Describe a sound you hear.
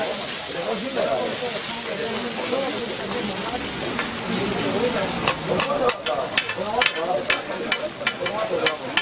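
A metal spatula scrapes and taps against a hot griddle.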